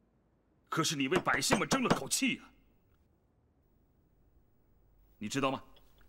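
A man speaks close by in a firm, pointed tone.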